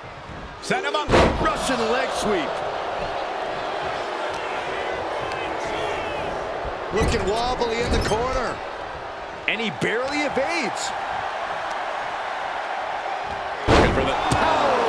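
A body slams heavily onto the wrestling ring mat.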